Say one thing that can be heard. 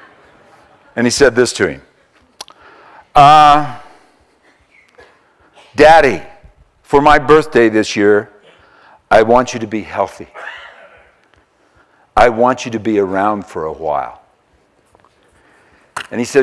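An older man speaks calmly into a microphone, in short phrases with pauses.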